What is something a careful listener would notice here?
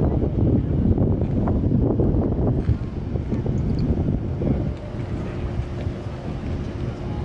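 Wind buffets the microphone outdoors with a low rumble.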